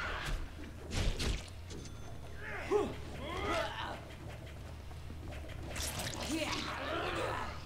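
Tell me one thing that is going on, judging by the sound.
Blades swish through the air and strike in a fight.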